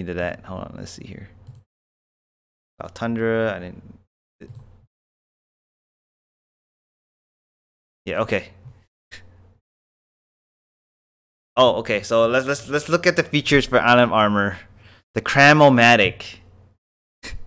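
A young man talks with animation into a close microphone, in bursts with pauses.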